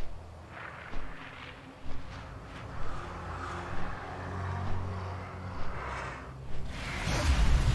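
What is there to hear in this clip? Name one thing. Large wings flap in a slow, steady rhythm.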